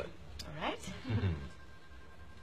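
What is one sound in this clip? A woman speaks playfully, close by.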